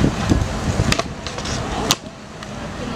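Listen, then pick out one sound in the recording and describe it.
A skateboard clacks sharply against the ground.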